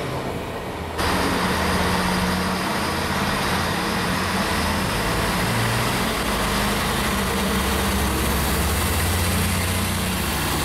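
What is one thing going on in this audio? A diesel train rumbles and pulls into a platform.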